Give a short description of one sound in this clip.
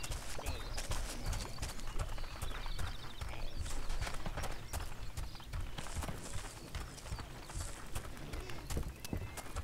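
Footsteps crunch along a dirt path.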